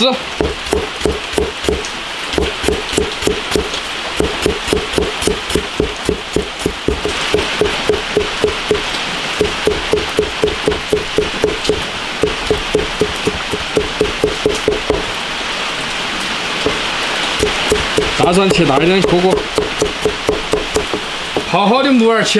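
A knife chops rapidly on a cutting board with quick, steady knocks.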